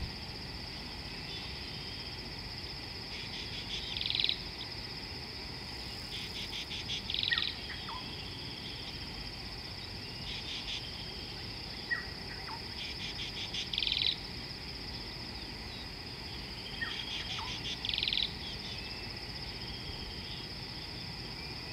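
Water laps gently against a muddy riverbank.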